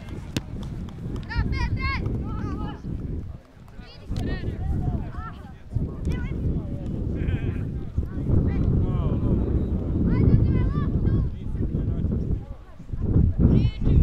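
Wind buffets loudly outdoors in an open field.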